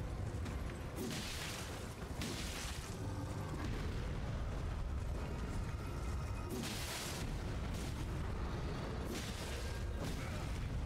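A giant creature stomps and slams heavily against the ground.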